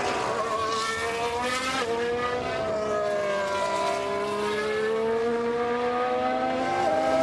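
Racing car engines whine loudly at high revs, rising and falling in pitch as gears shift.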